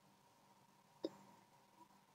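A wooden spoon knocks once against a metal pot.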